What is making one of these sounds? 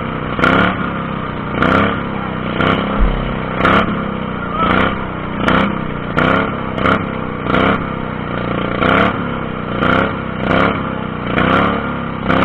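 Tyres churn through wet mud.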